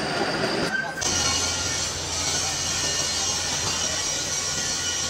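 A lathe motor hums steadily as a heavy shaft spins.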